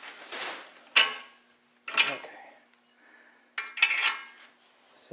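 Metal tools clank sharply against an engine block.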